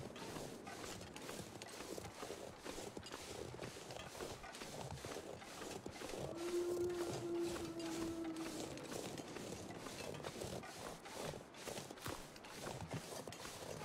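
Footsteps crunch rhythmically through snow.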